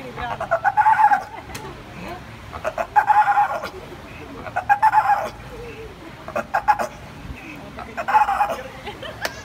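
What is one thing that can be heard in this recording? A sea lion barks loudly several times.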